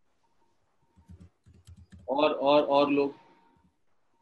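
A young man speaks briefly over an online call.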